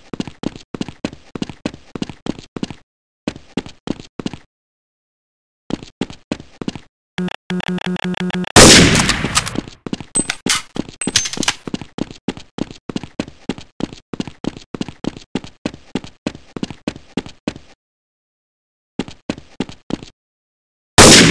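Quick footsteps clang on metal grating.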